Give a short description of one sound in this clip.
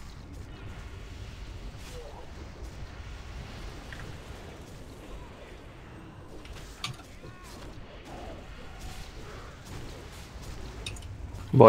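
Magic spells crackle and whoosh amid the clash of battle.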